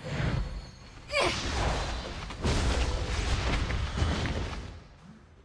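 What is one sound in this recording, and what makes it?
Magic blasts and sword strikes crash in a fast fight.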